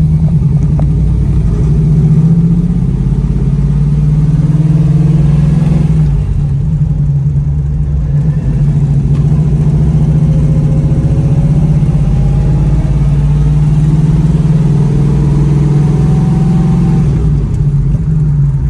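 A big engine rumbles deeply and steadily as a car drives along.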